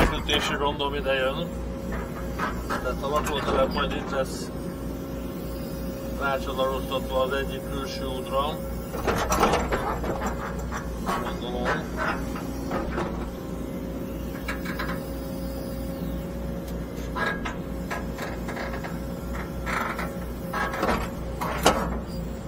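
A digger bucket scrapes and digs into soil.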